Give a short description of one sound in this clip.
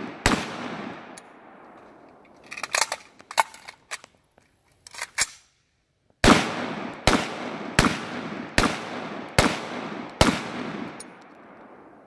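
A rifle fires loud, sharp shots outdoors, each echoing away.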